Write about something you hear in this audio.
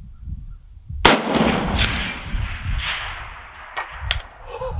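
A rifle fires a single loud shot that echoes and rolls away outdoors.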